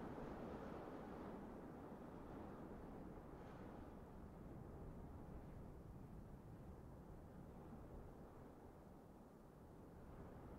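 A low, rumbling hum swells as a structure builds up, then slowly settles.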